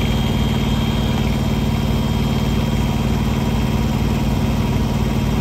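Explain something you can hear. An engine idles with a steady, rattling hum close by.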